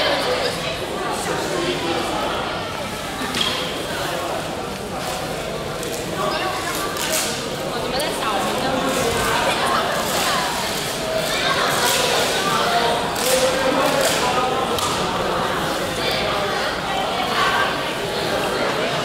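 A crowd of young women chatters in a large echoing hall.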